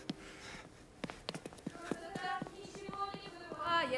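Footsteps knock on stairs.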